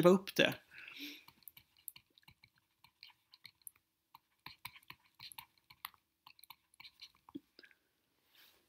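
A pen taps and scratches lightly on a writing surface.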